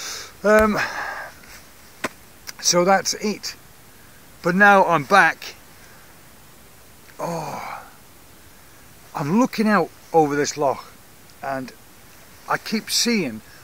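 A middle-aged man talks with animation close to a microphone, pausing often.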